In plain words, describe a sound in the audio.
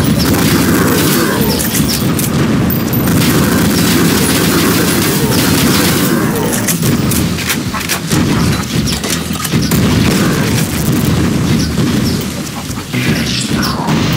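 Explosions boom and roar.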